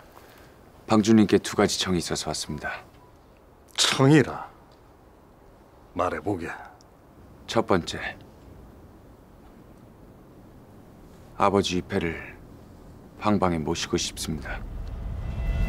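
A young man speaks calmly and seriously, close by.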